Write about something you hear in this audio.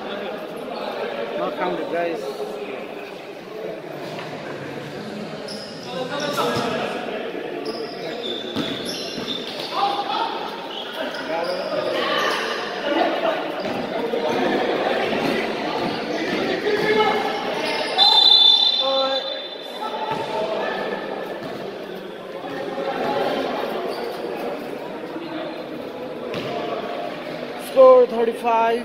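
A crowd of spectators talks and cheers in an echoing hall.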